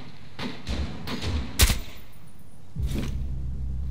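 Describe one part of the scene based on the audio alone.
A rifle fires a short burst close by.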